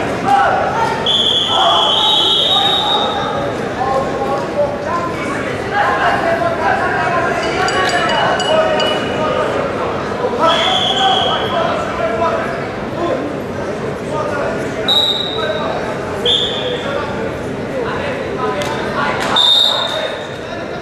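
A referee blows short sharp whistle blasts.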